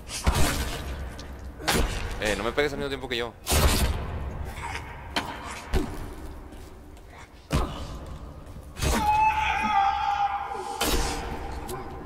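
Heavy blows thud into flesh again and again.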